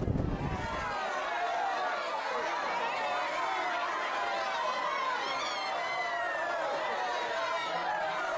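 A crowd shouts loudly together.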